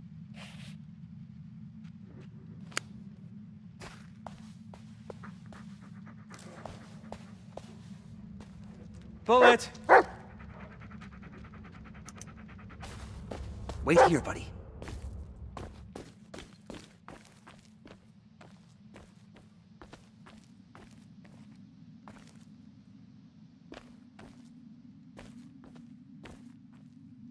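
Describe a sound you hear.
Footsteps crunch slowly over gravel and rubble.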